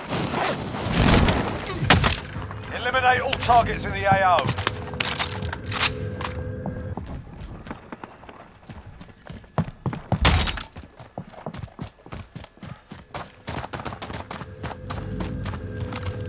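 Footsteps thud quickly on hard floors and dirt.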